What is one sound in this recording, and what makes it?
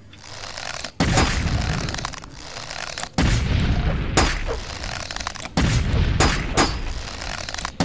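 A sword swings and strikes with heavy thuds.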